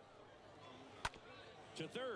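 A bat cracks sharply against a baseball.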